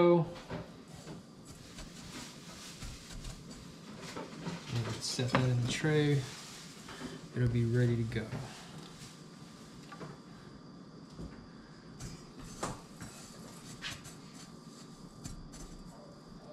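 Hands mix food in a metal bowl with soft scraping and clinking.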